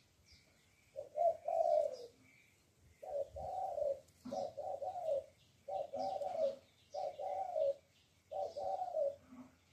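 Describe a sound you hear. A dove coos in a repeated low, soft call.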